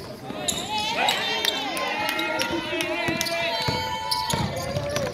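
A basketball bounces on a wooden floor as a player dribbles.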